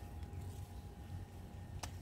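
Garden shears snip a stem.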